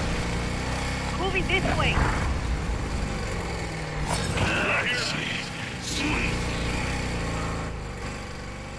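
A motorbike engine drones steadily.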